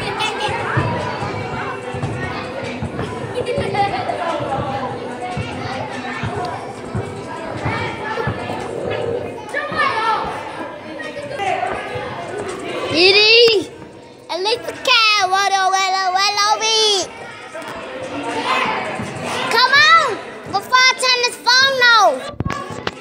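Children chatter and shout in a large echoing hall.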